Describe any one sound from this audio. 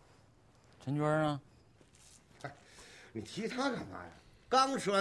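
A man asks questions calmly.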